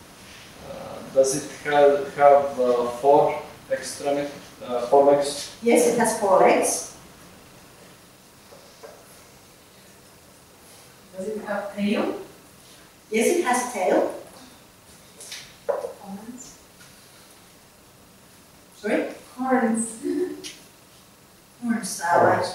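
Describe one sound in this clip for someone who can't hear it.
A woman speaks calmly, pausing between phrases.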